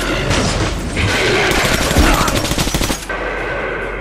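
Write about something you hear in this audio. A monster snarls and roars close by.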